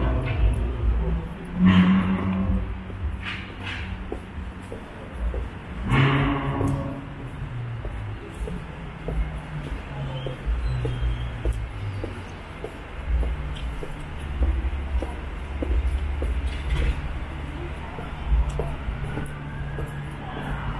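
City traffic rumbles low in the distance.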